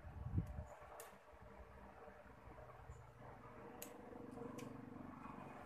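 Metal pliers click and snip sharply a few times.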